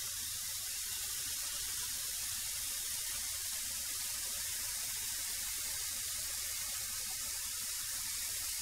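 A thickness planer roars steadily as a board feeds through it.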